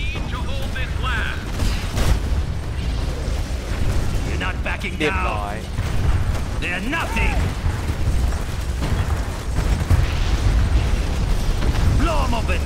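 Explosions boom and rumble steadily.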